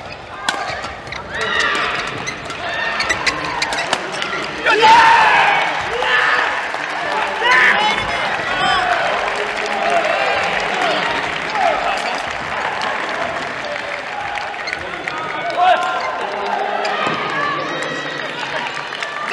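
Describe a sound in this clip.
Young men shout and cheer after the point.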